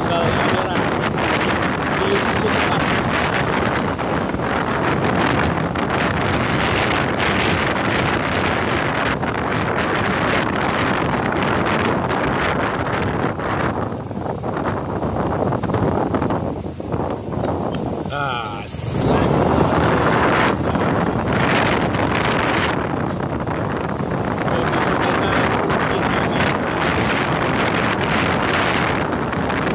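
Wind rushes loudly past a moving motorbike.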